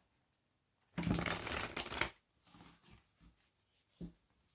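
A deck of cards shuffles between hands with a soft rustle.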